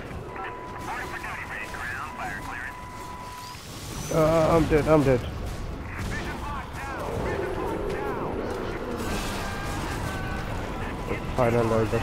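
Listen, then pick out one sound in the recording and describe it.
Gunfire bursts in quick shots.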